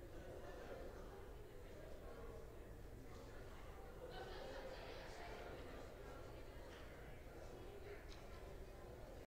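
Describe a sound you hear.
A small group of men and women chat at a distance in a large echoing hall.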